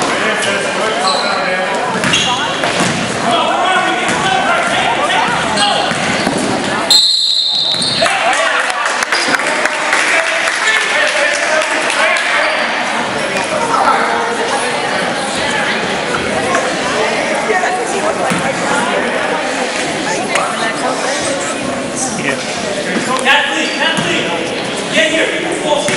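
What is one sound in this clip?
Spectators talk and cheer in an echoing gym.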